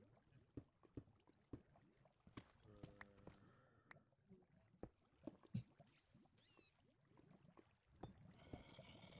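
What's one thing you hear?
A pickaxe chips and breaks stone blocks in short, sharp knocks.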